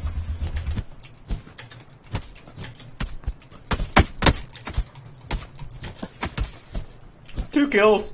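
Fists land punches with dull thuds.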